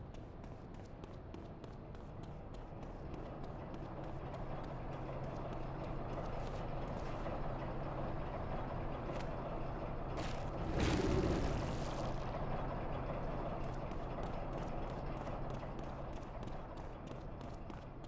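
Footsteps run quickly on hard pavement.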